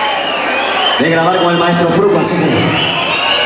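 A man sings loudly into a microphone over loudspeakers.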